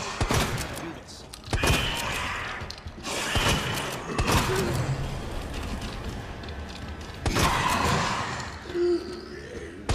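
A creature shrieks and snarls.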